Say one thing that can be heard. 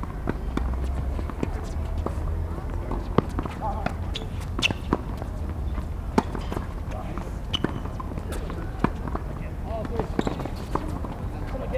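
Sneakers squeak and scuff on a hard court.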